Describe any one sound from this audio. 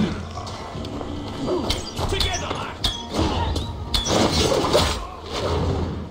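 An arrow is loosed from a bow with a sharp twang.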